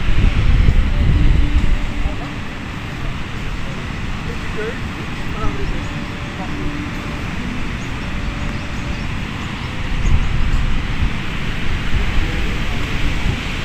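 Ocean surf breaks and washes onto a beach.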